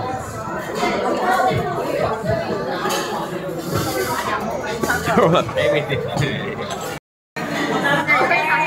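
A crowd of people chatter loudly all around.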